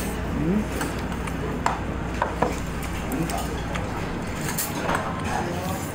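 Chopsticks clink against a ceramic bowl.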